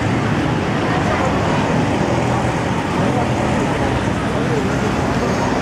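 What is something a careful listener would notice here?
Car and truck engines hum steadily as traffic drives along a busy street.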